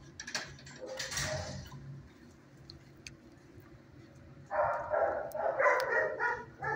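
A dog sniffs close by.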